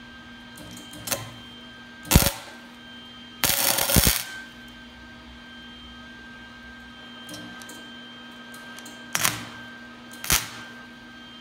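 A welder pops with short, sharp crackling tacks.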